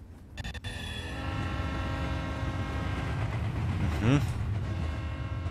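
A steam train's whistle blows long and loud.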